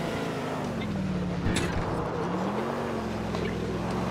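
A car thuds as it lands hard after a jump.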